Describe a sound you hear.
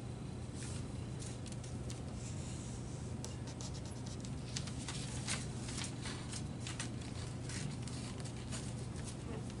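A blade scrapes along thin plastic sheet.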